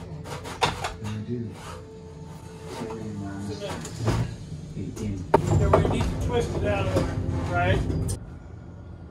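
Wooden boards creak and crack as they are pried loose.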